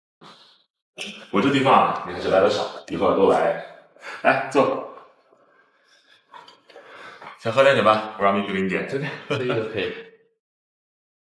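A middle-aged man speaks casually nearby.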